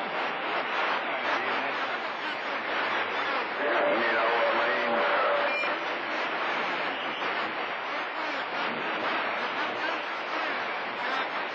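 Static hisses and crackles steadily from a radio receiver.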